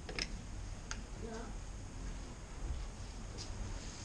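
A door handle rattles as it is pulled free.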